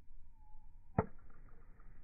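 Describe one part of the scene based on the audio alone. A golf club strikes a ball off a hitting mat with a sharp crack.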